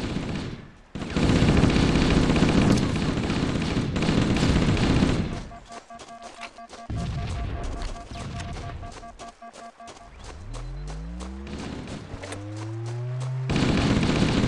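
An automatic rifle fires rapid bursts at close range.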